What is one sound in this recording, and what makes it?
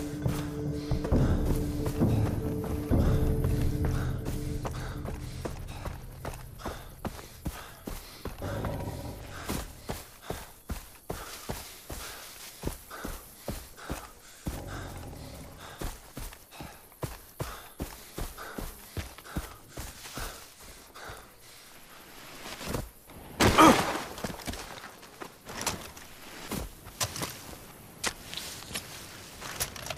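Footsteps tread steadily over dirt and grass.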